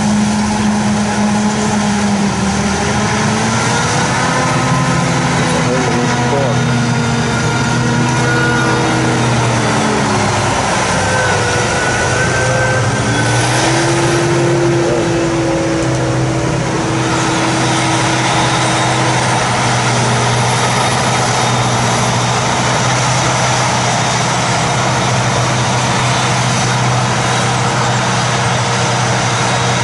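A tractor engine drones and changes pitch as it drives alongside.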